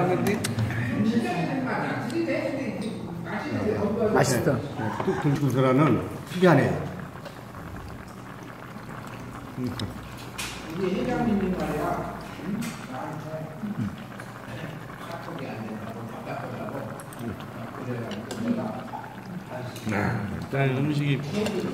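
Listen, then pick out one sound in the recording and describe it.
Broth bubbles and boils in a pot.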